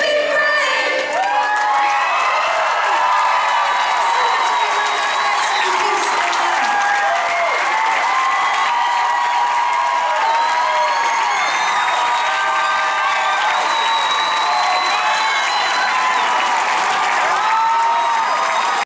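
A large audience cheers, screams and whistles loudly in a big hall.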